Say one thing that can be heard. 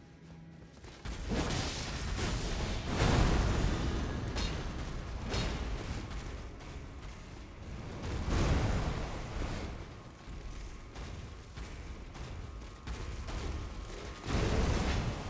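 Heavy blows and crashes ring out in a fight with a large creature.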